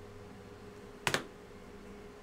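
A hard plastic card case knocks against a table.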